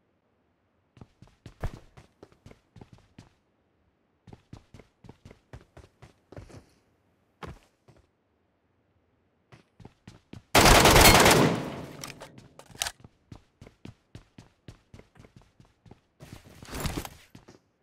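Footsteps patter quickly on a hard floor.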